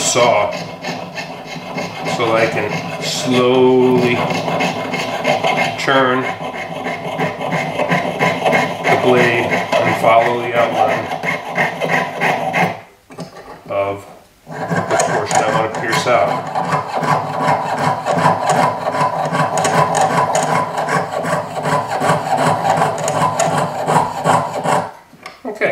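A metal blade scrapes against wood.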